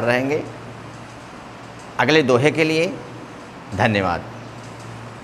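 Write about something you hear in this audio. A young man speaks calmly in short phrases, close to a clip-on microphone.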